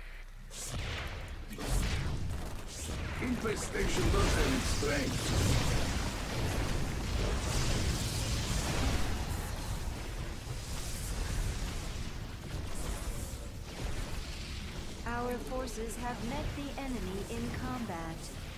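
Gunfire and blasts of a battle crackle and rumble.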